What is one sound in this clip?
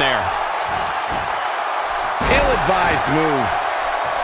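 A body slams onto a ring mat with a thud.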